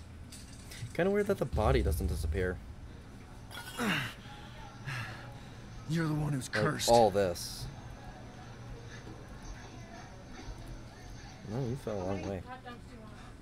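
A young man talks into a microphone in short bursts.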